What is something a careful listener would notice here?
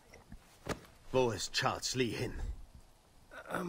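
A man asks a question in a low, harsh voice.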